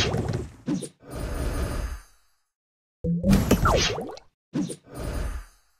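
Cartoon bursts and whooshes pop in quick succession.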